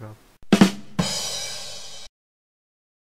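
A cymbal crashes and rings out.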